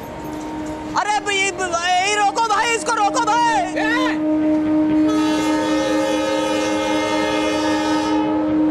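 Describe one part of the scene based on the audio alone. A young man sings loudly and with feeling, close by.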